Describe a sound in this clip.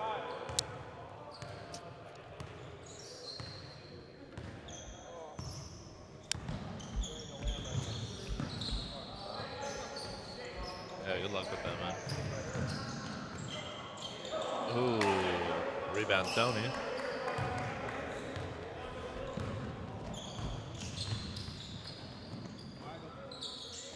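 A basketball bounces on a hard floor, echoing in a large hall.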